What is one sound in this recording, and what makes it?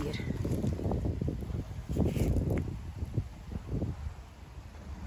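Dry leaves and twigs rustle as a rock is picked up from the ground.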